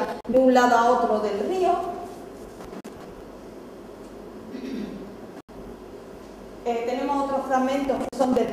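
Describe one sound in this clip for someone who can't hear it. A man speaks calmly to an audience through a microphone.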